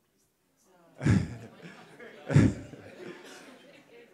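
A middle-aged man laughs into a microphone.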